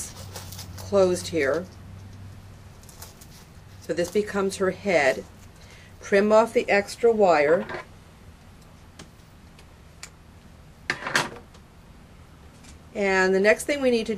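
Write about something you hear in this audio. A woman talks calmly and clearly close by, explaining in short phrases.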